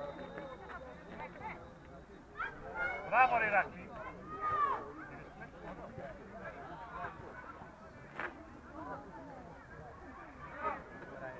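Young players shout and call to each other across an open outdoor pitch, some way off.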